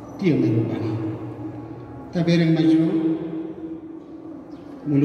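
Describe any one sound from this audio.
A man sings long, drawn-out notes through a microphone.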